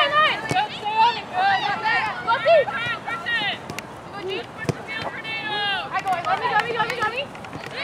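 A soccer ball is kicked with a thud.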